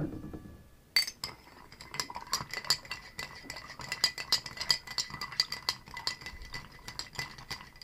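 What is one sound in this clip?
A spoon stirs ice in a glass with rapid clinking.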